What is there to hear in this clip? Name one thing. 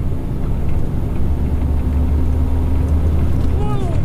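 A large truck rumbles close by while passing.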